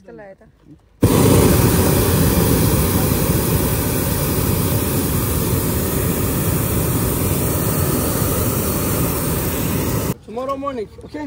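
A hot air balloon burner roars loudly overhead.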